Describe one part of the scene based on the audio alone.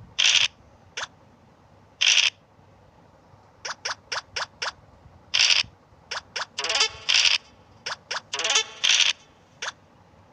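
Game pieces tick in quick steps as they hop along the board.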